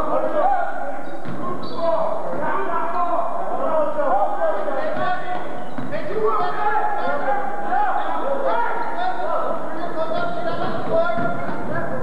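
Voices of a crowd chatter and call out in a large echoing gym.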